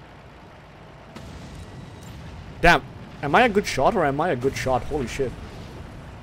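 A truck engine rumbles as it approaches.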